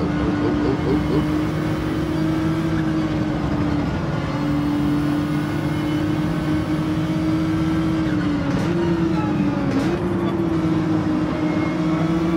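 A racing car engine hums steadily at high revs, dropping and rising in pitch as gears change.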